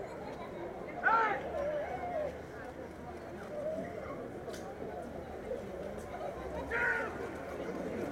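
A man shouts a short command outdoors.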